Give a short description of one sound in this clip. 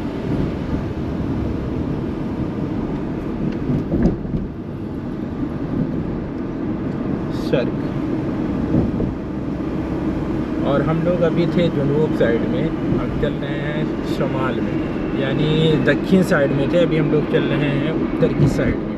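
Tyres rumble steadily on the road.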